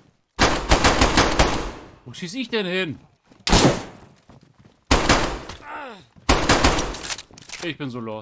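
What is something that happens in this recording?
Gunshots ring out in rapid bursts with echo.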